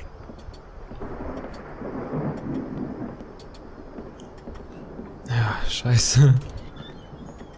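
A young man speaks into a close microphone, suddenly exclaiming loudly.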